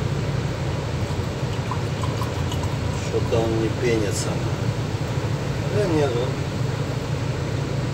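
Liquid pours into a glass.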